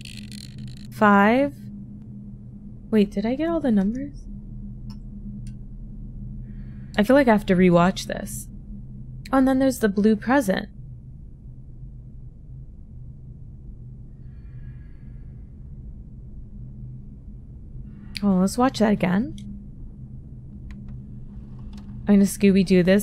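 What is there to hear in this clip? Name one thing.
A young woman talks animatedly and expressively into a close microphone, in short bursts.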